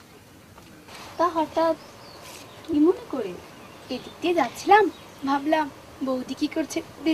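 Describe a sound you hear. A girl talks and laughs nearby.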